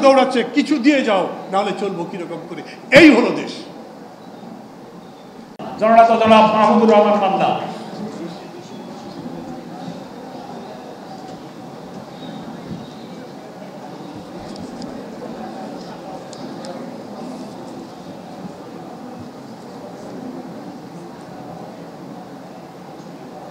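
An elderly man speaks forcefully through a microphone and loudspeaker.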